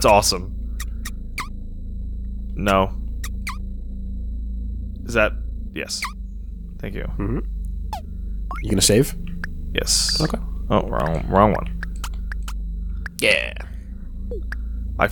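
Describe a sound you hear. Short electronic menu blips sound as options are chosen.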